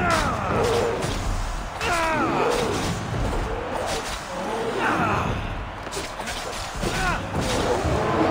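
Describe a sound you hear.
A bear growls and snarls while fighting.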